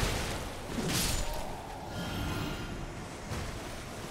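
A sword swishes and clangs in a fight.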